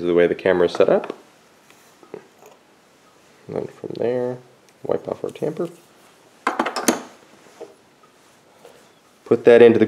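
A metal coffee filter handle clinks and clicks against an espresso machine.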